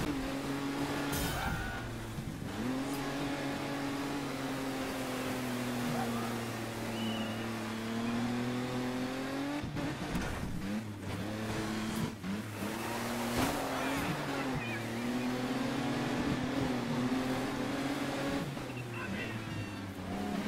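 A racing truck's engine roars steadily, rising and falling in pitch.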